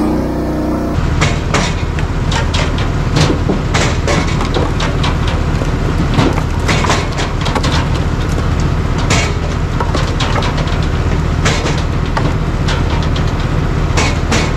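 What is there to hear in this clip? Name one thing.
Split logs clatter onto a pile.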